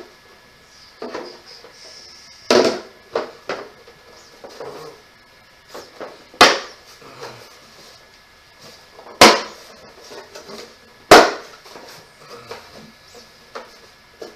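Wooden pieces knock and clatter together as a man handles them.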